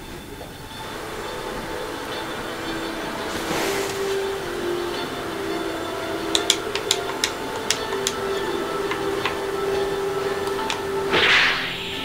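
Water splashes steadily in a fountain.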